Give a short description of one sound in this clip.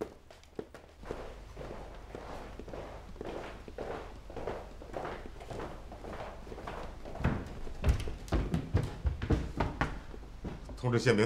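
Footsteps thud as several men walk up stairs.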